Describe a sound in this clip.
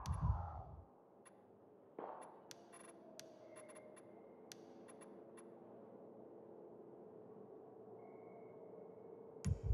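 Short soft clicks tick now and then as menu items are selected.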